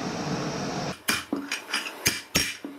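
A hammer strikes metal sharply several times.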